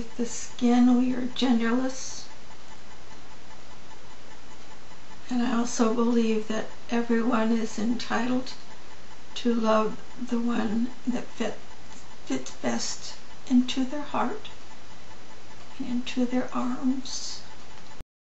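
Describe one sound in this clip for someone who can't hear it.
An elderly woman speaks calmly into a webcam microphone.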